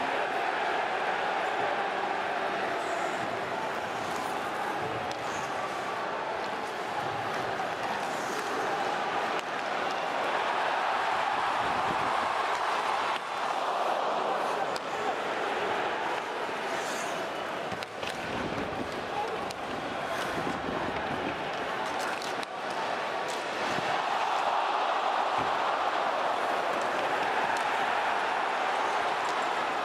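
Skates scrape and hiss on the ice.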